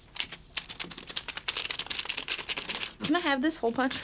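Scissors snip rapidly through paper.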